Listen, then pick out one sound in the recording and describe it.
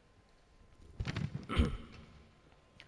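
Papers rustle and thump close to a microphone.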